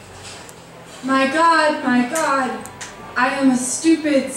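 A young woman speaks with feeling into a microphone.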